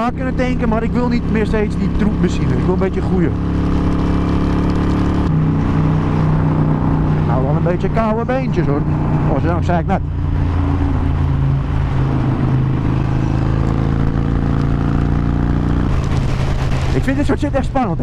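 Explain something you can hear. A motorcycle engine rumbles steadily at speed.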